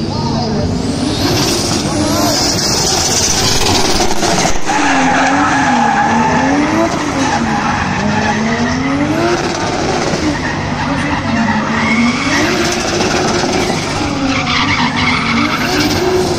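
Tyres squeal loudly on asphalt.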